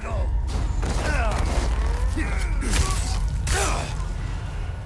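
A heavy blow lands with a loud thud.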